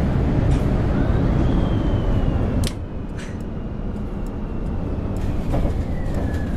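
A bus engine whines and slowly drops in pitch.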